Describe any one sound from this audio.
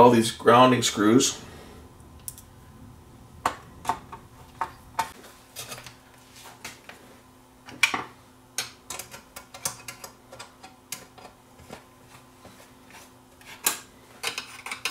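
Hands tap and knock against a metal chassis and circuit board.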